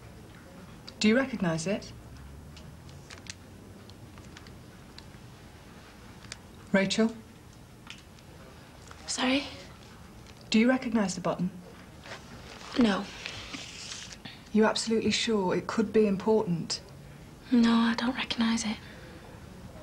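A young woman speaks quietly and hesitantly, close by.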